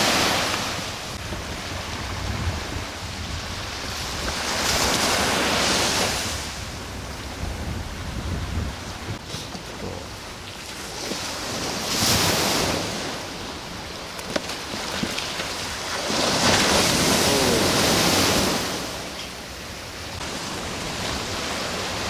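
Waves break and wash onto a shore.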